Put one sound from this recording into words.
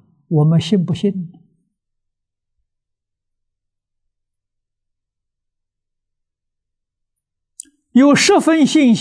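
An elderly man speaks calmly and warmly into a close microphone, pausing between phrases.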